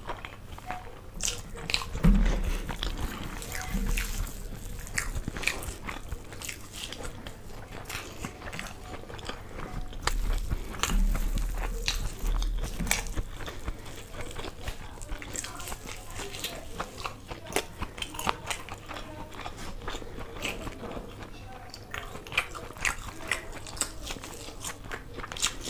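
Fingers squish and mix rice and chicken on a plate.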